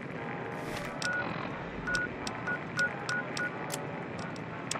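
Short electronic beeps sound as a menu is browsed.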